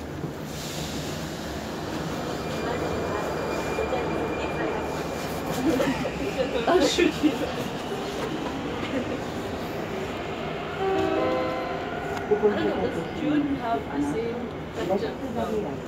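A stopped underground train hums steadily in an echoing station.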